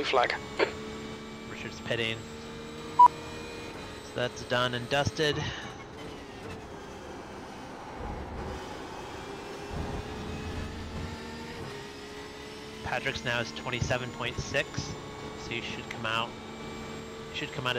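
A race car engine hums steadily, its pitch shifting as the car speeds up and slows down.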